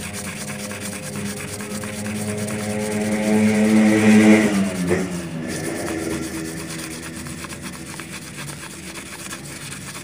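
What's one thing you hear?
Fingertips rub and scrape across a rubber sheet.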